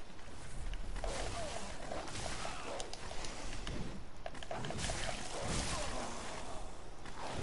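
Skeletons rattle and clatter as they move.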